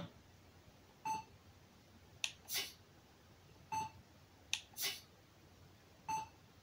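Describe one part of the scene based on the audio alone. Short electronic menu chimes beep several times.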